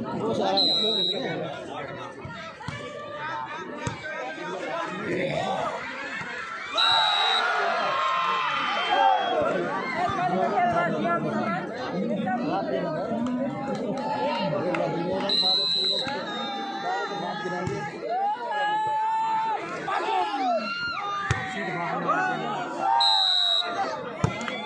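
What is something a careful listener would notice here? A referee blows short, sharp whistle blasts.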